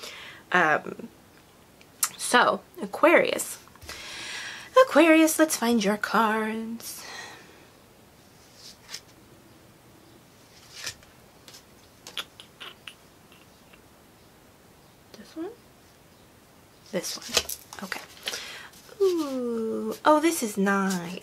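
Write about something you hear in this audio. A young person speaks calmly and close to a microphone, with pauses.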